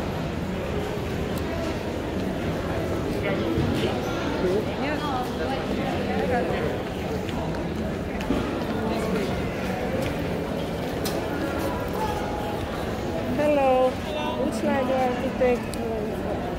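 A young woman talks close by, softly and casually.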